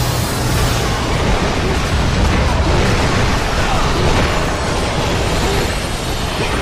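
Blades clash and slash in a fast, noisy fight.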